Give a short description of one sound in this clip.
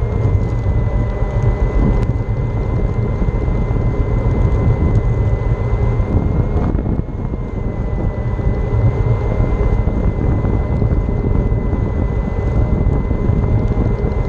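Small hard wheels rumble steadily over rough pavement.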